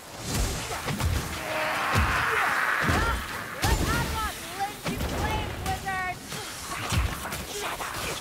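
Creatures shriek and squeal in pain.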